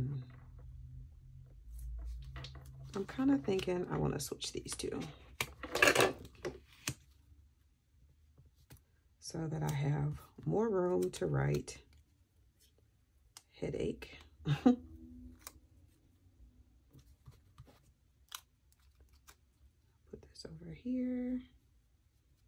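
Paper rustles and crinkles softly as stickers are handled.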